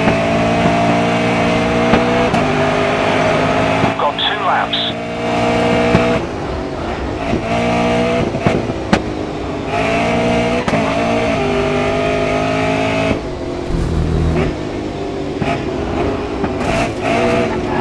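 A racing car engine roars loudly, its pitch rising and falling with the gear changes.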